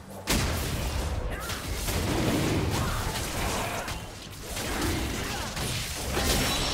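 Video game spell effects crackle and boom during a battle.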